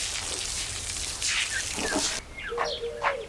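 A broom sweeps briskly over a hard floor.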